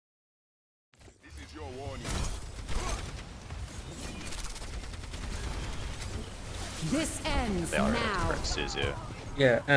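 Gunfire and ability blasts crackle in a busy game fight.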